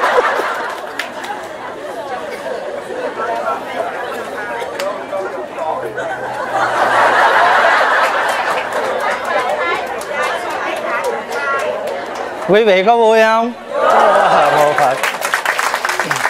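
A crowd of men and women laughs and chatters.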